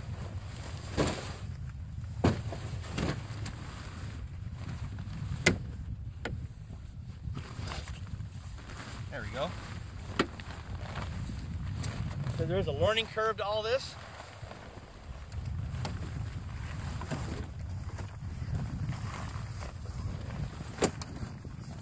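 Metal poles clack and knock sharply a few times.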